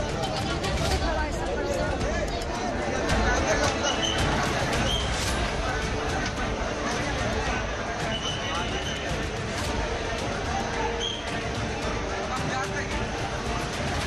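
A crowd of people chatter and shout noisily all around.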